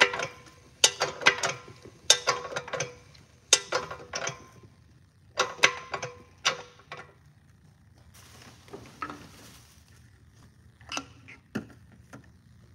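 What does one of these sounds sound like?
A filling machine's lever clicks and clunks as it is worked.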